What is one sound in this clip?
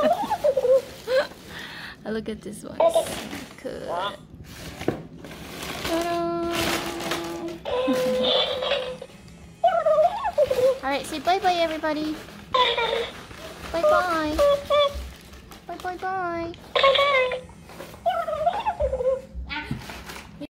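A toy flamingo chatters and sings in a high, squeaky voice.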